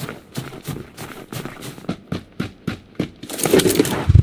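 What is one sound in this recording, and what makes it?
Footsteps crunch quickly on snow.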